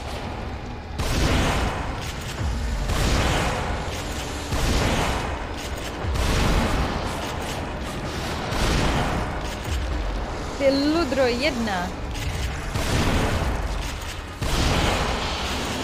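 Gunshots crack loudly several times.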